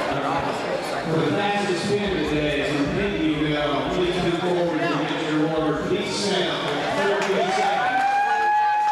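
A man talks nearby over the crowd noise.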